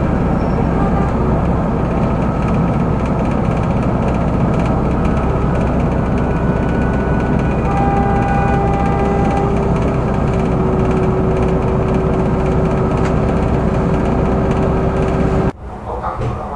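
A tram hums and rumbles steadily at a stop.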